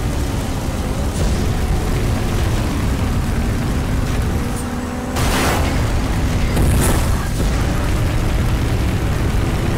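Car engines roar at high speed.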